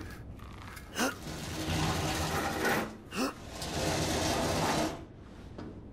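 A blade squelches into flesh.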